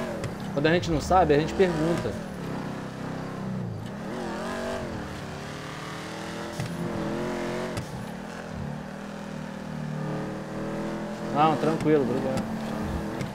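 Tyres squeal on the road.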